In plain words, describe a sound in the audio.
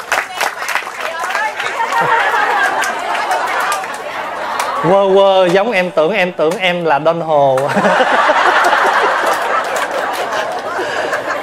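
An audience laughs and chatters.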